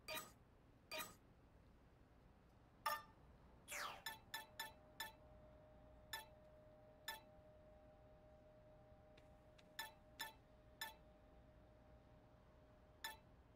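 Short electronic menu blips sound again and again.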